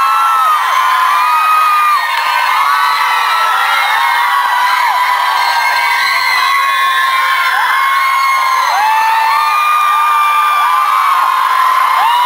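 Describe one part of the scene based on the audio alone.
A crowd of young fans screams and cheers loudly.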